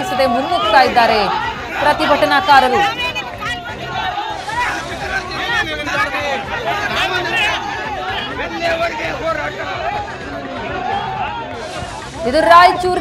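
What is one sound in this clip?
A crowd of men shouts and yells excitedly outdoors.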